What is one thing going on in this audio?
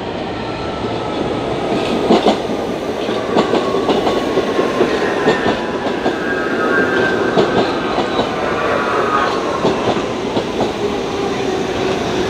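A second subway train pulls in close by, wheels clacking over rail joints.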